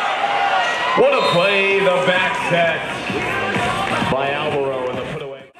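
Young men shout in celebration nearby.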